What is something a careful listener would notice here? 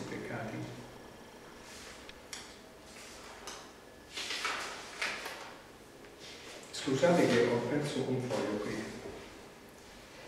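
An older man reads aloud calmly into a microphone.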